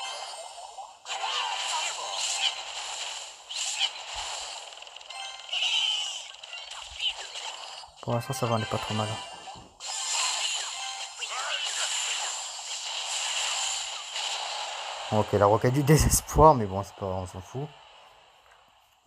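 Cartoon battle sound effects clash and pop.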